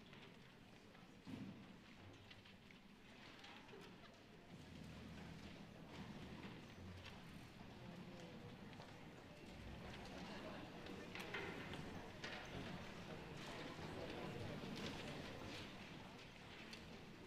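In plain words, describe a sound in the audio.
A string orchestra plays in a large hall, swelling louder toward the middle.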